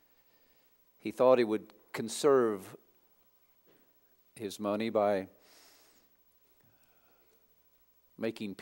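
A man speaks slowly and deliberately through a microphone in a large echoing hall, with short pauses.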